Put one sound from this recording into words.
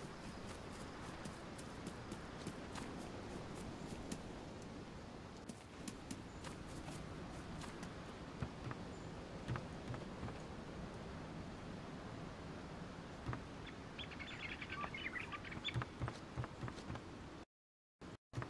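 Footsteps thud quickly across grass and then onto a wooden floor.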